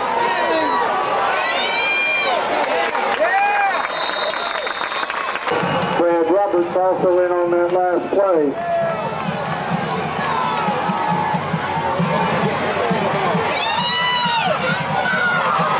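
A large crowd cheers and shouts in an open stadium.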